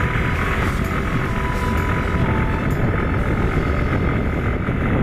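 Wind rushes loudly past a moving motorcycle.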